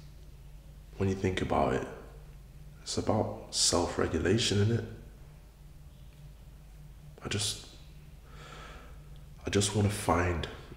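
A young man speaks calmly, close to a microphone.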